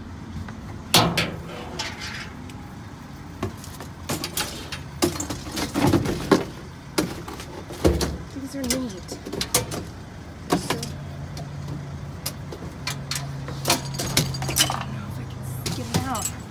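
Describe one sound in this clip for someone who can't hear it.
Plastic and cardboard rustle and clatter as trash is handled.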